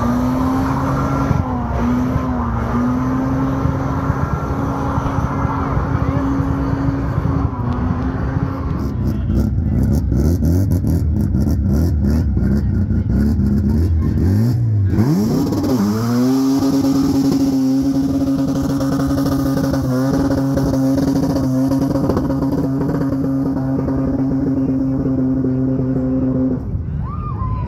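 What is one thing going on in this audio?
A car engine roars loudly at high, steady revs.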